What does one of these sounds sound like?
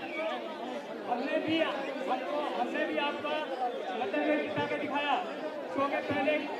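A crowd of men talk over one another close by, excitedly.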